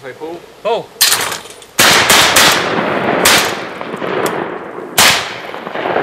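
Shotguns fire several loud blasts that echo across open water.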